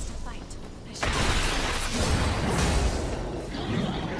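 A loud fiery explosion bursts and roars.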